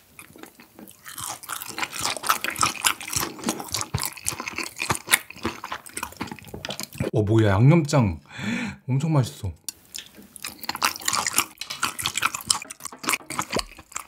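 A man chews wet food close to a microphone with sticky, smacking sounds.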